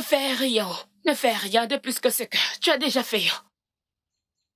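A young woman speaks with animation nearby.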